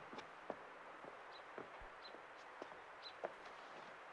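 A man's footsteps tap on a wooden porch.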